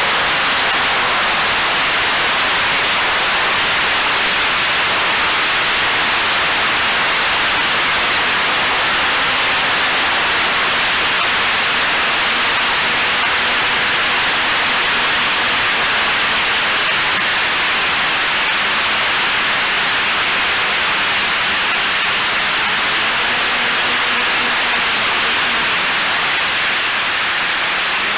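Wind rushes loudly past a small drone as it flies fast.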